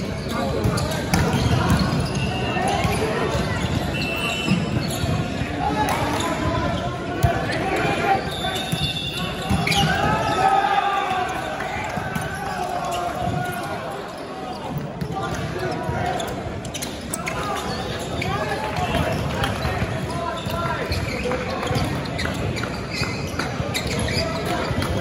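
Men shout and call out during a volleyball game in a large echoing hall.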